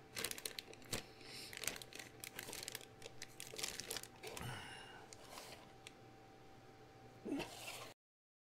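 Plastic wrapping crinkles as hands handle it.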